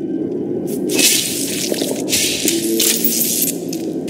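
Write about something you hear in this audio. Electricity crackles and sizzles in bursts.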